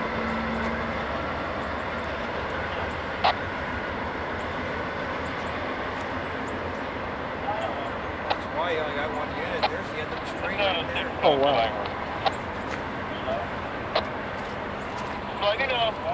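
A freight train rumbles steadily across a steel bridge.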